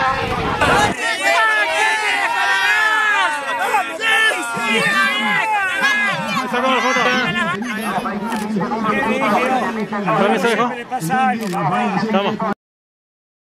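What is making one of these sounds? A group of men cheer and chant loudly together outdoors.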